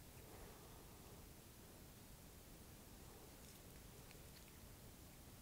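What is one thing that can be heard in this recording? Metal tweezers lightly tap and rustle against a flower's petals.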